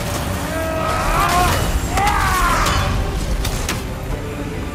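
Lightning crackles and booms.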